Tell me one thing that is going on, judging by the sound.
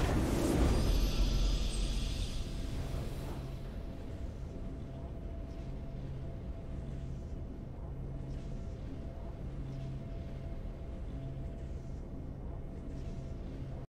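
A triumphant musical flourish plays softly.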